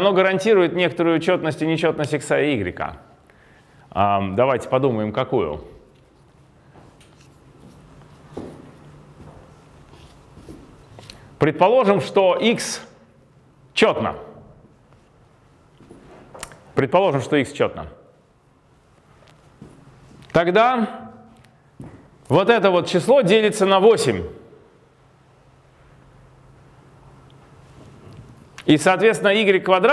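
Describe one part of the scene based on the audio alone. A man speaks calmly, lecturing, with pauses between phrases.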